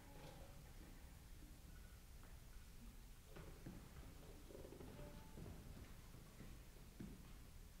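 An orchestra plays quietly in a large hall.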